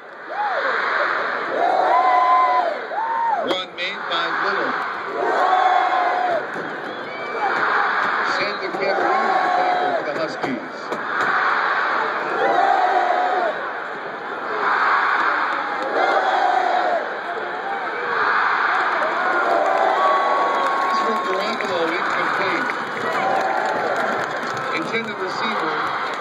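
A large stadium crowd chants back and forth in rhythmic bursts in an open-air stadium.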